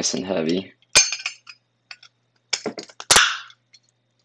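Metal parts clink together in someone's hands.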